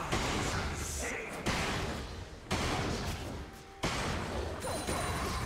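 Video game spell effects burst and crackle in repeated blasts.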